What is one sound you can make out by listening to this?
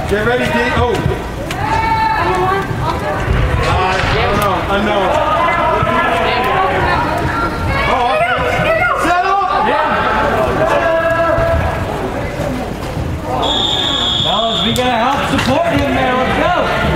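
Spectators shout and cheer in a large echoing indoor hall.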